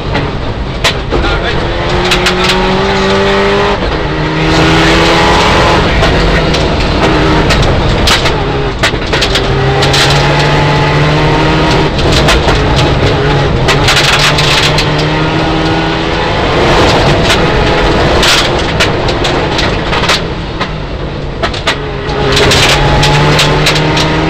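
Gravel and stones rattle and clatter against the underside of the car.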